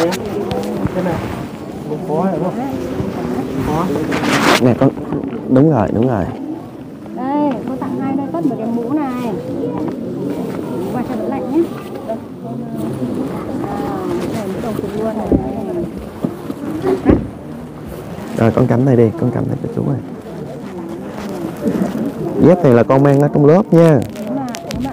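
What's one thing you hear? Many people talk and chatter nearby, outdoors.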